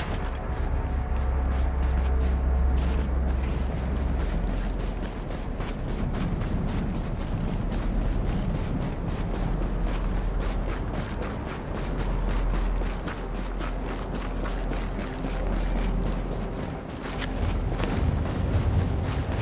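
Strong wind howls steadily.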